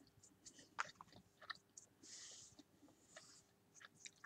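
A paintbrush taps and scrapes lightly against a ceramic figure.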